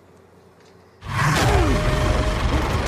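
A monster snarls and shrieks loudly up close.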